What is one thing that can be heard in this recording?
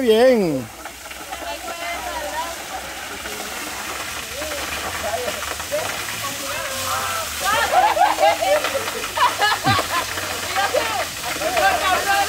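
Water from a waterfall splashes steadily onto rocks and water.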